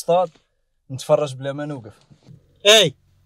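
A man speaks calmly at close range.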